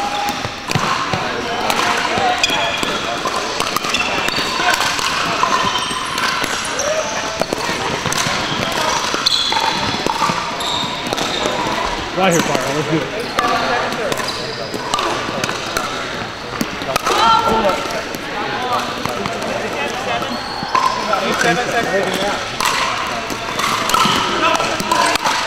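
Paddles smack plastic balls with sharp pops, repeatedly.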